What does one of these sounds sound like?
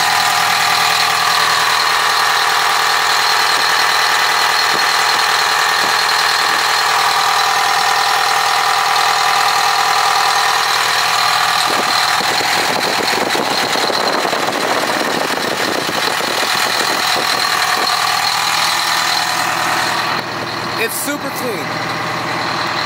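A diesel engine idles with a steady drone.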